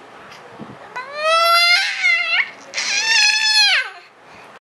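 A baby cries loudly up close.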